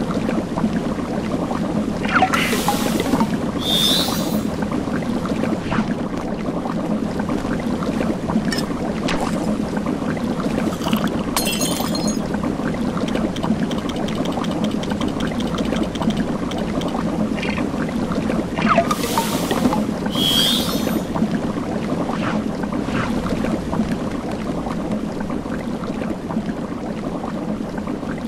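A cauldron bubbles steadily.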